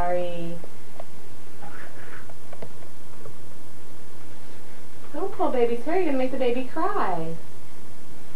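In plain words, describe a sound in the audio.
A young girl talks nearby in a high, sing-song voice.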